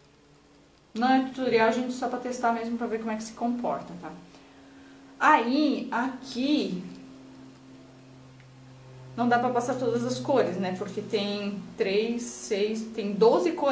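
A woman talks calmly and close to a microphone.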